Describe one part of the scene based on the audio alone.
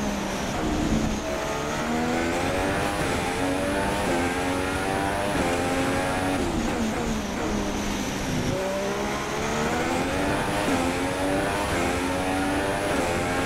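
A Formula One car's engine revs up and shifts through the gears as it accelerates.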